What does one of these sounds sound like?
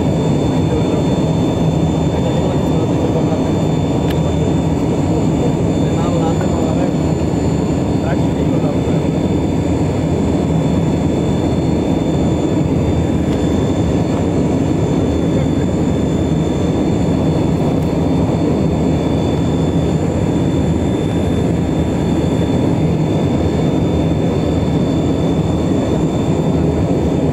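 Wind rushes loudly past an aircraft wing.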